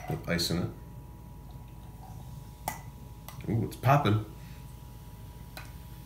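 Soda pours and fizzes into a glass.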